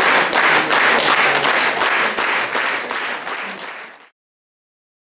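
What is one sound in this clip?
An audience applauds loudly and the applause fades out.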